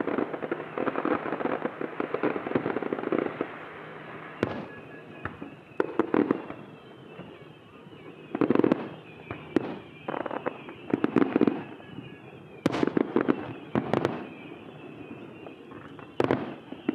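Fireworks boom and crackle in the distance, echoing across open water.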